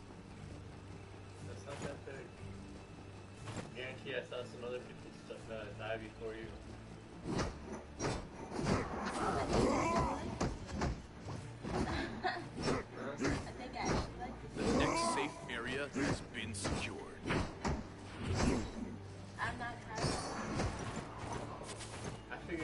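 A young woman talks and laughs with animation into a close microphone.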